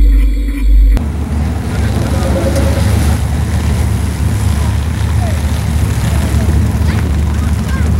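A car engine rumbles deeply as the car pulls away.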